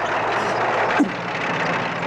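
An explosion booms once.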